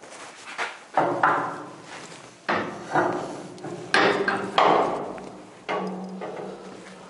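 Metal clangs and rings loudly, echoing in the room.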